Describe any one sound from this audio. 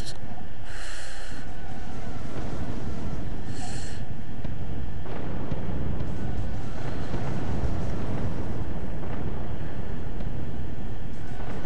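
Spaceship lasers fire in short zapping bursts.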